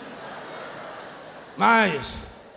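A woman laughs among an audience.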